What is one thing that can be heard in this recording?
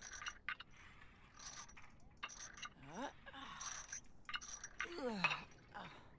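Weights clank on an exercise machine.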